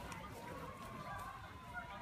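Large birds flap their wings.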